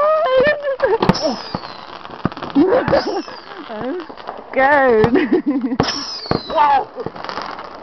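Fireworks whistle as they shoot up.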